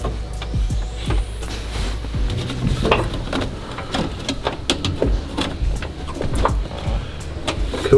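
Metal parts click and rattle up close.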